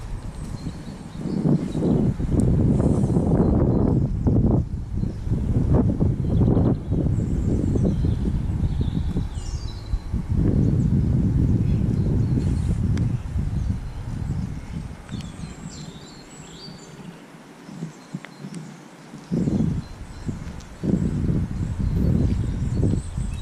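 Wind gusts across open water outdoors, rumbling loudly.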